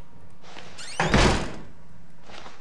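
A stall door bangs shut with a loud slam.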